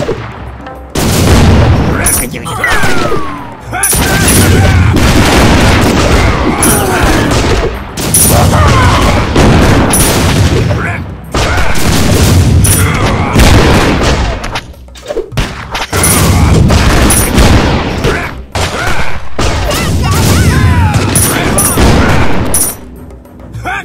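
Cannons fire in booming bursts amid a noisy battle.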